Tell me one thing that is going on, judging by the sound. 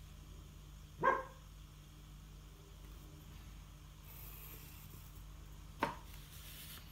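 A plastic protractor taps and slides on paper.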